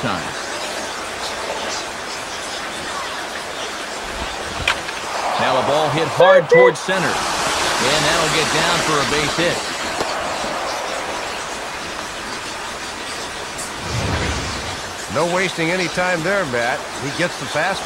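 A stadium crowd cheers.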